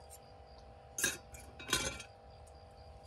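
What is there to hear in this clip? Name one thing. Metal cookware clinks as a hand handles it.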